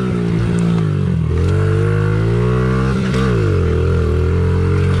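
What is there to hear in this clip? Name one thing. A dirt bike engine roars close by, its pitch rising and falling with the throttle.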